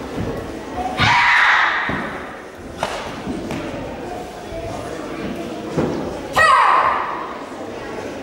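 A karate student shouts sharp kiai cries in a large echoing hall.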